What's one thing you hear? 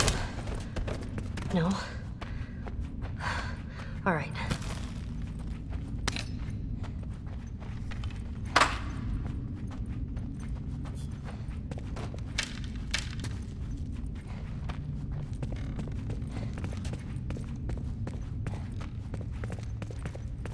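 Footsteps tread softly across a floor.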